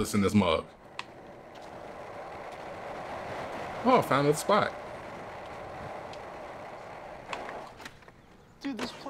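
Skateboard wheels roll and rumble steadily on concrete.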